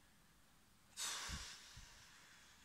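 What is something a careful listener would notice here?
A young woman sighs loudly close up.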